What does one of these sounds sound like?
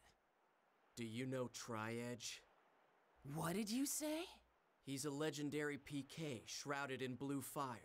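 A young man speaks tensely and calmly, close by.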